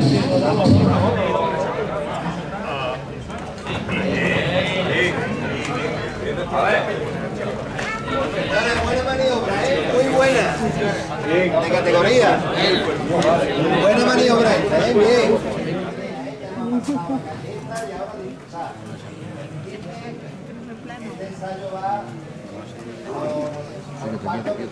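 A crowd of men murmurs and chatters nearby in the open street.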